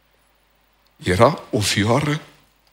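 A middle-aged man speaks with animation through a headset microphone.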